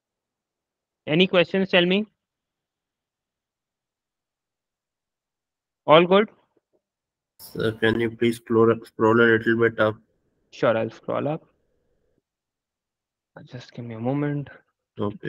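A young man speaks calmly through an online call, in short bursts with pauses.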